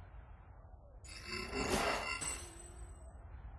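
A loud electronic whoosh swells and fades.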